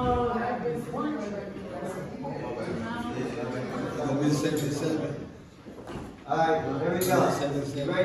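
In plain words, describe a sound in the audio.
A young man talks loudly nearby.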